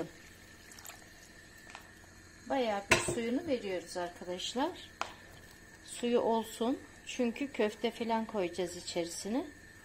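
A pot of stew simmers and bubbles in a pan.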